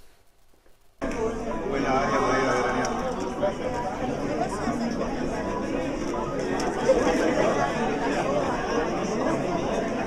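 A crowd of men and women chatters in a busy room.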